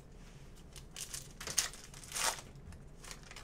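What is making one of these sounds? A foil wrapper crinkles and tears as a card pack is ripped open.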